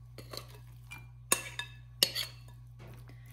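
A metal spoon clinks and scrapes against a glass dish.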